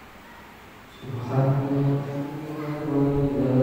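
A man chants in a drawn-out, melodic voice through a loudspeaker in an echoing hall.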